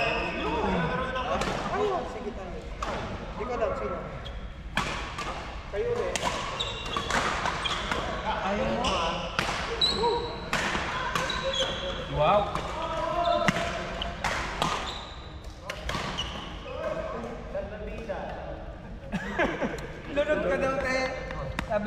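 Voices of players chatter and call out across a large echoing hall.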